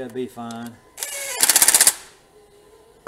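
A cordless impact driver rattles in short, fast bursts.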